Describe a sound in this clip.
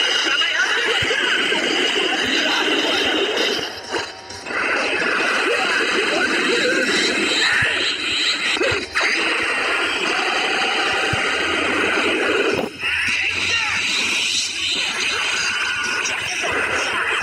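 Punches and kicks thud in rapid fighting.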